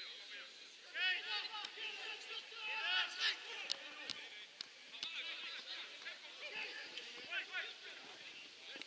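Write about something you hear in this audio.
Men shout to each other loudly outdoors.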